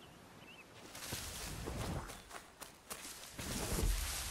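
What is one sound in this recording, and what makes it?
Footsteps rustle quickly through bushes and dry leaves.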